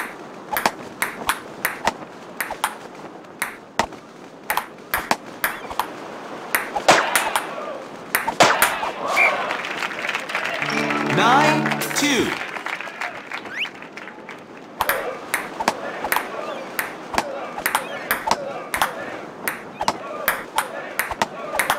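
A ping-pong ball clicks back and forth off paddles and a table in quick, sharp taps.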